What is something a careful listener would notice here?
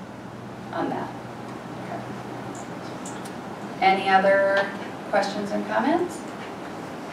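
A woman speaks calmly in a large room, heard from a distance.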